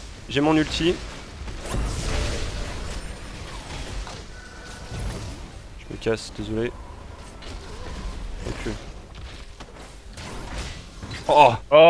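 Game weapons clash and strike in quick bursts.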